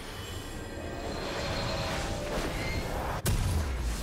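Magical spell effects whoosh and chime.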